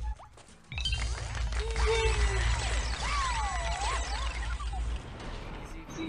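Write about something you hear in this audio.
Bright magical chimes sparkle and ring.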